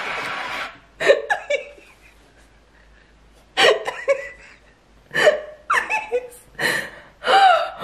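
A young woman laughs loudly and shrieks close to a microphone.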